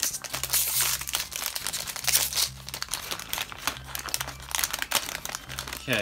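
A plastic packet crinkles and rustles in hands.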